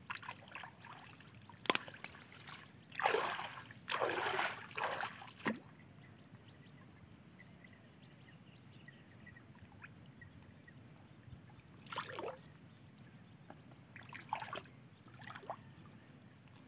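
Grass rustles and swishes as a man pulls at it by hand.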